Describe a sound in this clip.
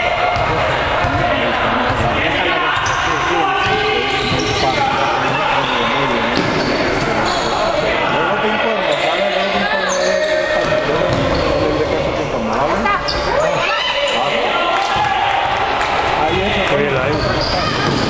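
Adult spectators talk and shout loudly nearby.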